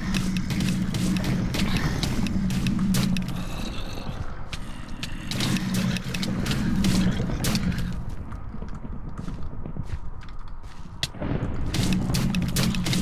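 Sharp gunshot cracks fire in quick, uneven bursts.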